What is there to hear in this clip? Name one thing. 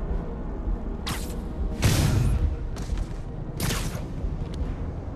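Quick whooshes rush past as a figure swings through the air in a large echoing hall.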